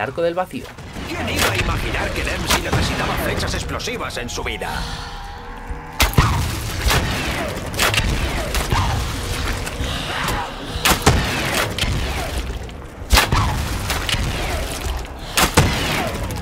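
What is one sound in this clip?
Explosions burst with loud booms and crackles.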